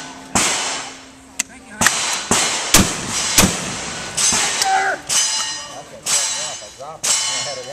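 A double-barrel shotgun's action clicks as it is broken open and reloaded.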